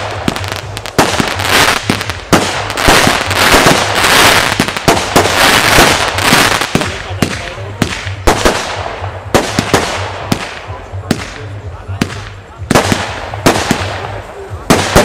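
Fireworks crackle and fizz as sparks burst.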